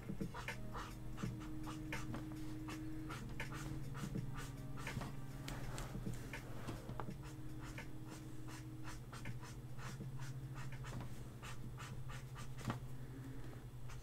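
A pen scratches and taps on paper.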